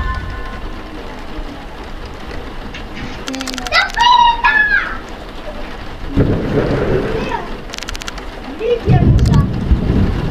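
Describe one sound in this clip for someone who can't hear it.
Rain falls steadily outside.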